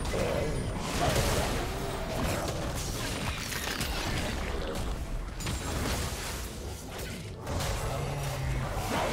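Game combat effects clash and burst with spell sounds.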